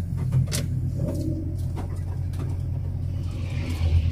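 A truck passes close by going the other way.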